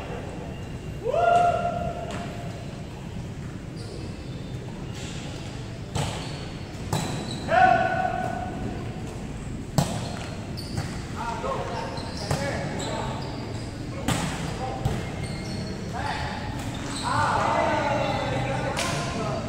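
Young men shout to each other during play in an echoing hall.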